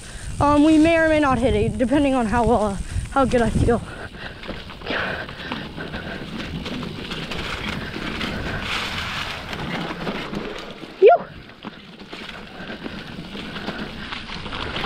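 Bicycle tyres roll and crunch over dry leaves on a dirt trail.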